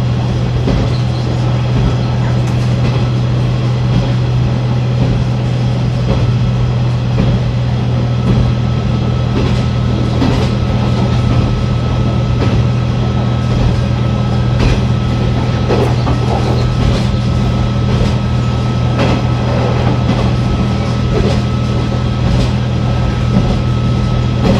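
A train engine hums steadily as the train rolls along.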